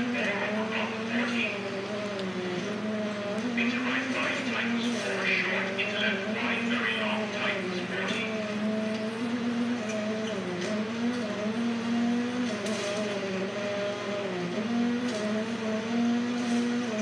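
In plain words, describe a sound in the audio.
A rally car engine revs and drones steadily, rising and falling in pitch through gear changes.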